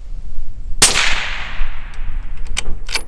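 A rifle fires a single loud shot that echoes away outdoors.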